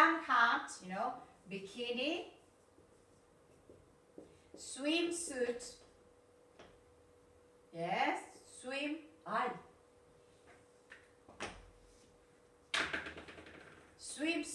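A woman speaks clearly and slowly nearby, in short phrases with pauses.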